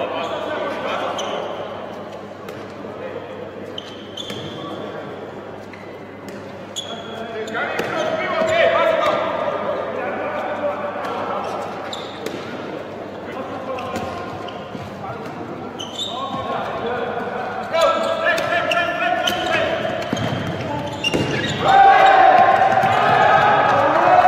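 Sneakers squeak sharply on a hard court floor in an echoing hall.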